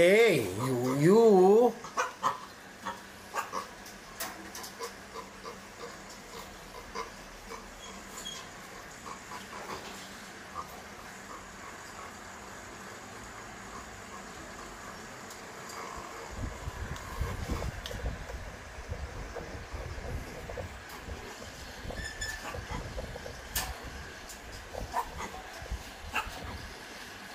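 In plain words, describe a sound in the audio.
A metal cage rattles and clinks as monkeys climb on it.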